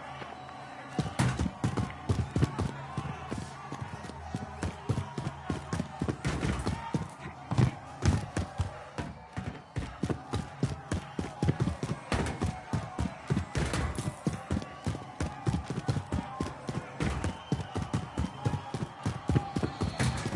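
Quick footsteps thud and patter on a hard floor.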